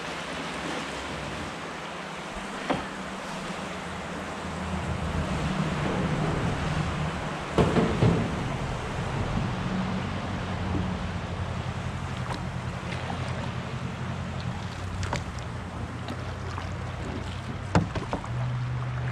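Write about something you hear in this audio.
River water rushes and gurgles around a canoe.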